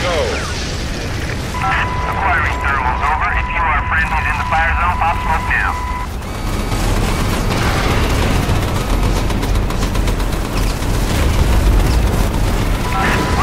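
Fires crackle and roar.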